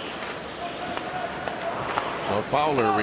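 A hockey stick clacks against a puck.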